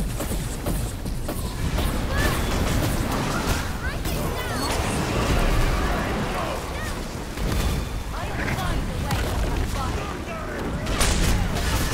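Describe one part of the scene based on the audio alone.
Magic blasts and spell effects crackle and burst in a game fight.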